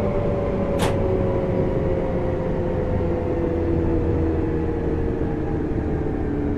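An electric train motor whines, slowly dropping in pitch.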